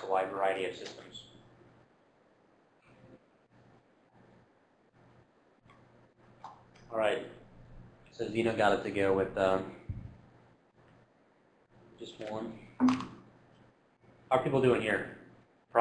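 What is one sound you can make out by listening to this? A man lectures calmly into a microphone in a room, in bursts with pauses.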